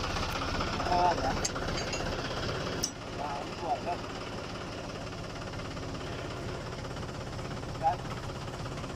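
Metal parts clank sharply a few times.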